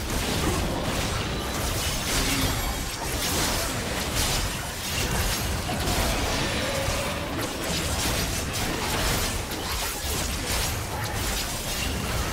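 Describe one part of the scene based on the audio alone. Game spell effects burst, crackle and whoosh during a fast fight.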